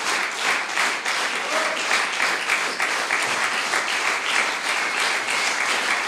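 An audience claps steadily in an echoing hall.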